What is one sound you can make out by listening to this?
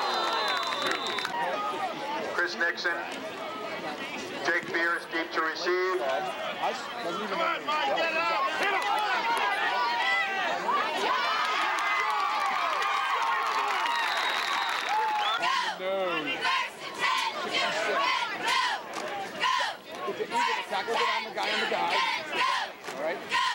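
A crowd of men and boys talks and calls out outdoors.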